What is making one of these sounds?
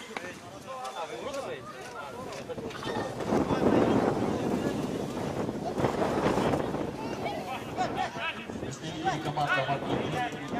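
Young men call out to each other across an outdoor pitch.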